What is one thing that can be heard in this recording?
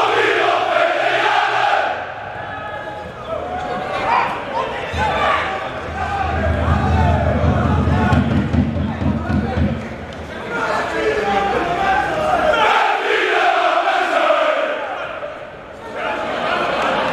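A large crowd of fans sings and chants loudly in an open stadium.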